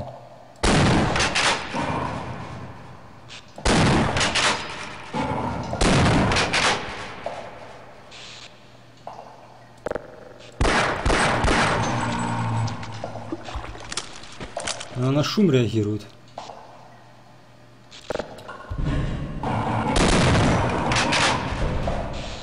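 A shotgun fires loud, booming blasts that echo.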